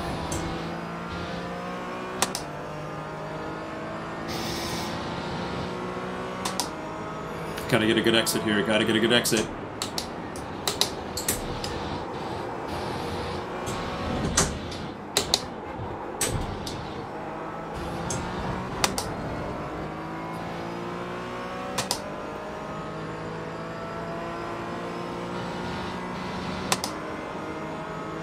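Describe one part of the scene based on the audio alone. A race car engine revs up and drops as gears shift.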